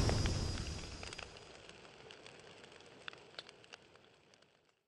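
Flames crackle and pop.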